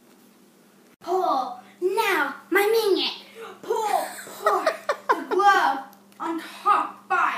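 A young boy talks excitedly, close by.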